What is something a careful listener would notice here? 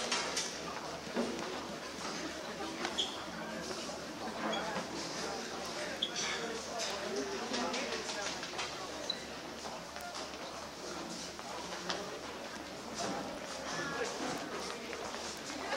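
A crowd of teenagers chatters all around, close by.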